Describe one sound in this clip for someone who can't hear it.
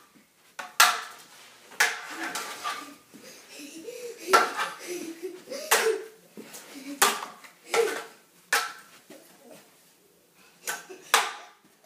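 Young boys shout and laugh close by.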